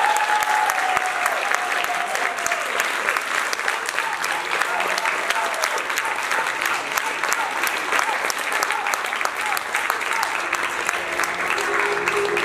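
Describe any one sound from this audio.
Many people clap in loud, steady applause.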